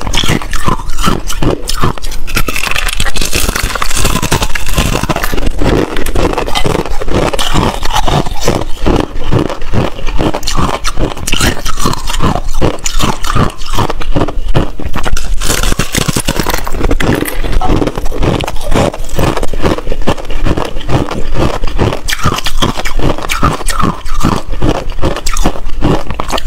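Crisp, brittle food crunches loudly and steadily close to a microphone.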